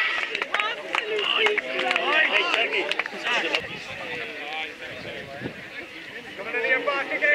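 A crowd of spectators cheers and chatters outdoors.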